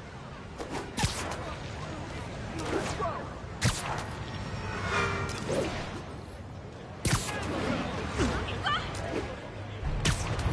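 Sharp thwipping snaps ring out as web lines shoot.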